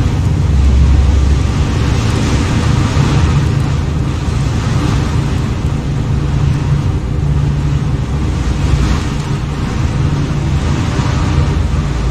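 A spacecraft's engines hum deeply and steadily as it hovers.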